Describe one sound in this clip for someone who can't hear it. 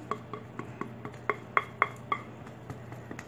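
A spatula taps and knocks against a glass bowl with a ringing clink.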